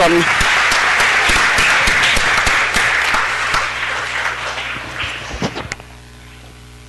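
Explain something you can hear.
An audience applauds in a large hall, then the clapping fades.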